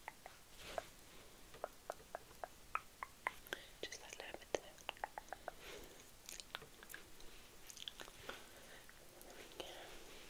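Fingers tap and brush lightly near a microphone.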